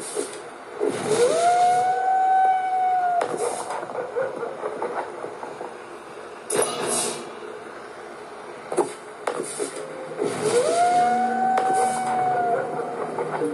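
A game tone swells upward and holds, then breaks off.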